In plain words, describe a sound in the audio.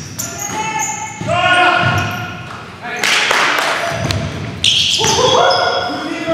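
Sneakers squeak on a hardwood floor in an echoing gym.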